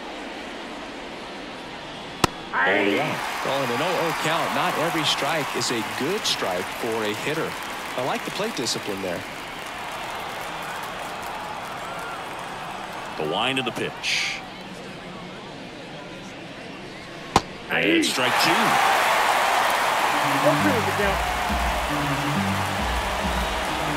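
A stadium crowd murmurs and then cheers loudly.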